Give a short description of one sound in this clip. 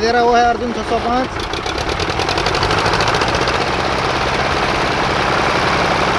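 Tractor engines rumble and chug loudly close by.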